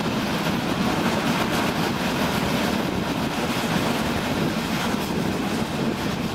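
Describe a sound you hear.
Wind rushes past an open train window.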